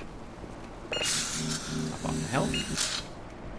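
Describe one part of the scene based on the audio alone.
A wall-mounted health charging station hums as it charges.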